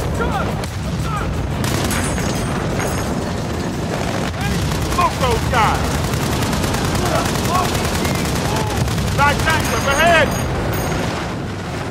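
Explosions blast nearby with crashing debris.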